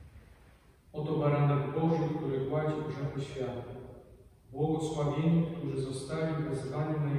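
A man chants loudly and steadily through a microphone, echoing in a large hall.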